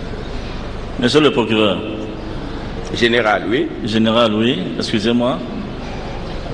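Another man speaks formally through a microphone.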